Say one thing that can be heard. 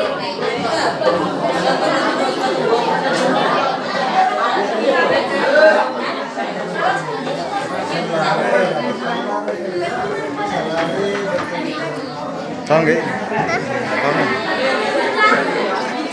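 Many women and children chatter at once.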